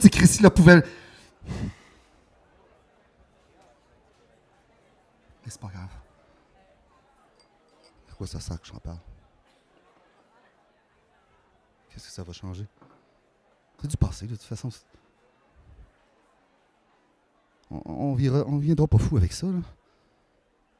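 A man speaks into a microphone in short bursts with long pauses.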